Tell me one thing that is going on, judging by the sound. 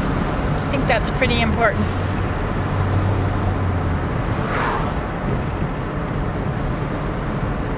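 A car hums and rumbles steadily while driving.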